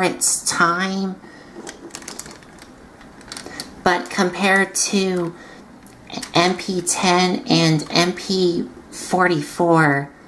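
Plastic toy parts knock and click softly as they are handled.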